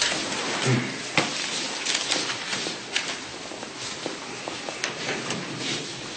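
Footsteps shuffle across a room.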